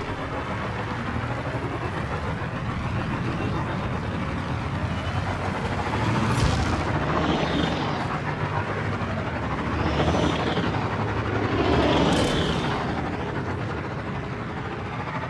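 A motorbike engine hums steadily.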